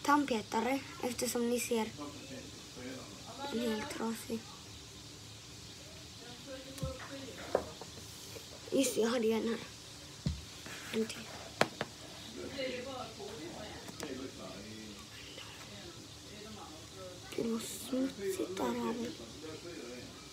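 A young boy talks close up with animation.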